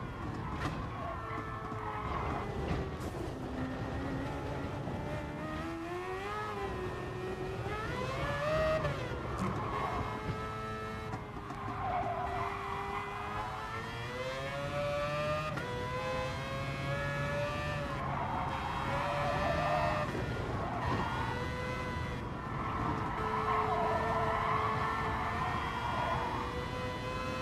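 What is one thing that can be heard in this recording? A racing car engine revs up and down.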